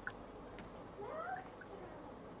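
A young woman speaks briefly over an online call.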